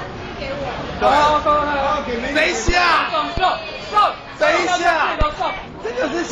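Young women laugh and talk loudly nearby.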